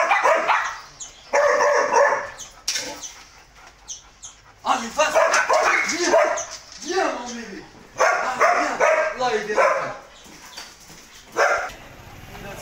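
A man talks loudly and with animation close by.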